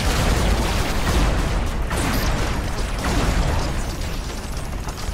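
Rapid gunfire and laser blasts crackle nonstop.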